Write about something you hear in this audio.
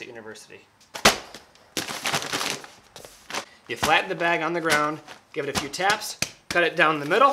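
A paper sack of powder thumps onto the floor.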